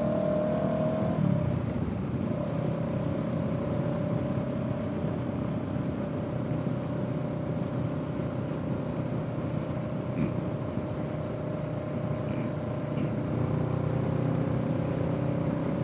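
A parallel-twin motorcycle engine hums while cruising at a steady speed.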